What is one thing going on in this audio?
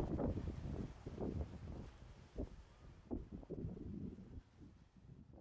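Small waves lap and splash against rocks.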